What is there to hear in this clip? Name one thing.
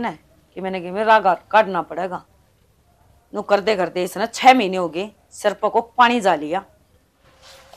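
A young woman speaks with feeling, close by.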